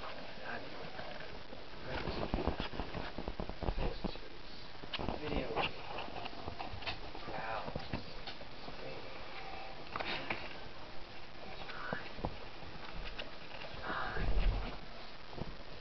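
A cardboard box rustles and scrapes as a small animal climbs about inside it.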